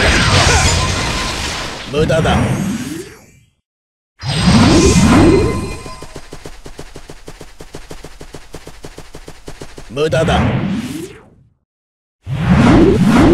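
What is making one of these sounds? Magic blasts whoosh and rumble in short bursts.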